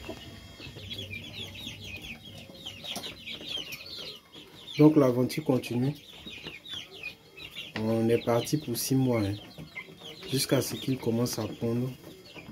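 Many chicks chirp and peep constantly close by.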